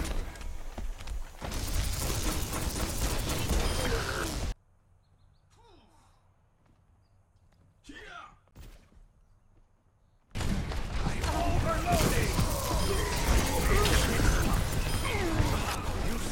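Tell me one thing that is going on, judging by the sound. A weapon fires rapid electric blasts.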